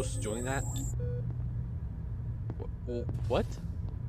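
A game button gives a short electronic beep when pressed.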